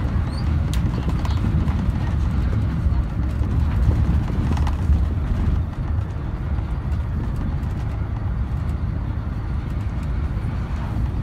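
Loose fittings rattle and click inside a moving bus.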